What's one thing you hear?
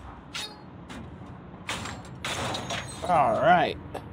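A padlock rattles and a metal panel clanks open.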